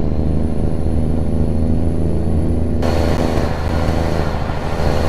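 A truck's diesel engine drones steadily, muffled at first and then louder and brighter.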